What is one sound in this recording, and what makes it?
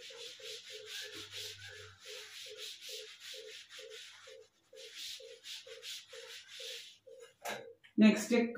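A cloth rubs across a chalkboard in quick, even strokes.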